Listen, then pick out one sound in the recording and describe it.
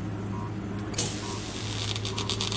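Loud static hisses and crackles.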